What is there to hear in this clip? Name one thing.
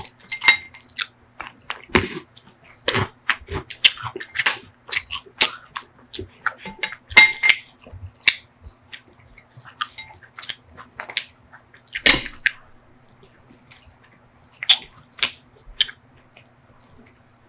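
A spoon scrapes and clinks against a glass bowl close up.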